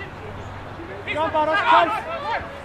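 A crowd of spectators cheers and shouts from a distance.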